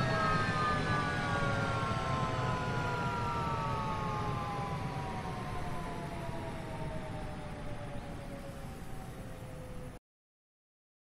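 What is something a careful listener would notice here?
A jet engine idles and winds down with a slowly falling whine.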